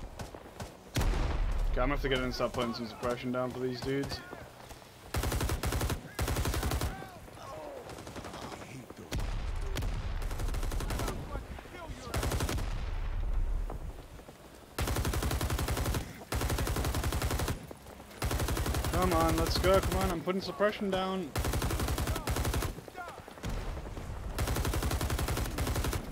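A machine gun fires long, rapid bursts close by.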